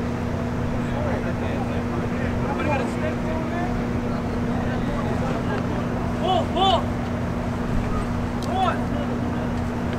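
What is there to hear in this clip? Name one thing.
Men call out to each other at a distance.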